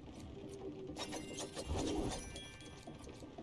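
Sharp swishing hits ring out in quick bursts.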